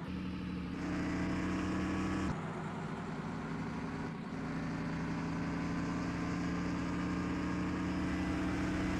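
A bus diesel engine drones in a driving game while the bus accelerates.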